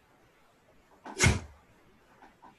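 A man lets out a short, sharp shout.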